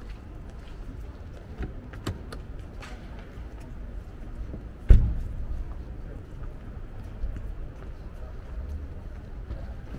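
Footsteps tap on cobblestones.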